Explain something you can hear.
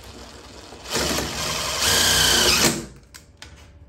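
A cordless drill whirs as it drives in a screw.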